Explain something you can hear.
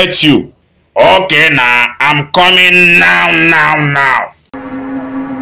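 A young man answers.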